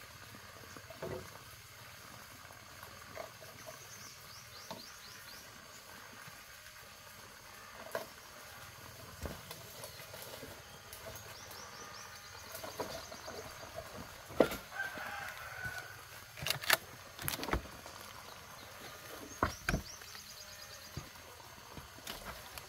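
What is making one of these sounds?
Bamboo poles knock and clatter as they are handled.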